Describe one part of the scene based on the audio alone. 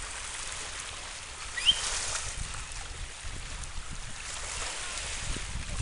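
Small waves lap gently at the shore.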